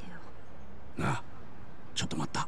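A man calls out briefly.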